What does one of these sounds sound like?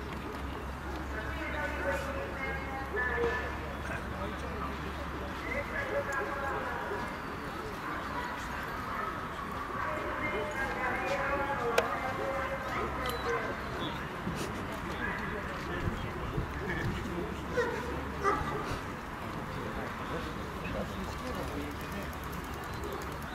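A crowd of spectators murmurs outdoors.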